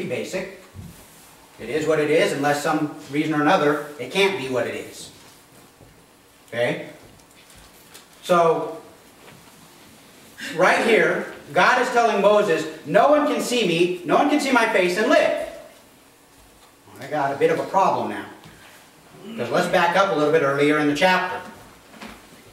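A man speaks calmly and clearly to a group.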